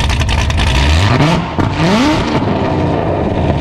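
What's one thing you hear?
A sports car engine revs up sharply and drops back.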